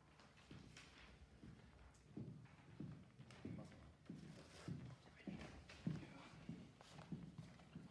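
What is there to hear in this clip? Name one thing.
Footsteps thud across a hard floor in a large echoing room.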